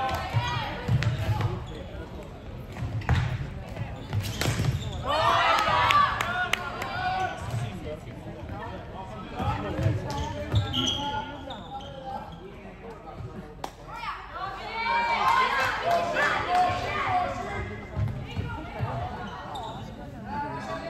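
Young women players shout and call out to each other across an echoing hall.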